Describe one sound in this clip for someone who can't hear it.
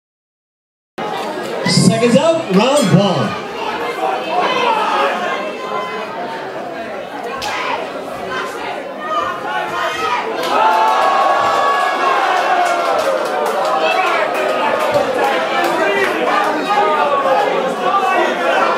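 A large crowd chatters and cheers loudly in an echoing hall.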